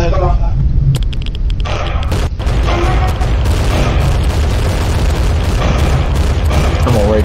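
Explosions boom and crackle loudly.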